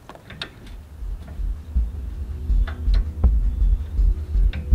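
A small engine sputters and chugs unevenly at a low pitch.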